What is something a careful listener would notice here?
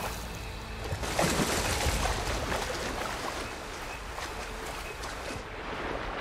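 Water splashes as a figure wades in and swims.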